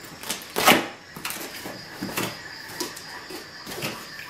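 A knife slices through tape on a cardboard box.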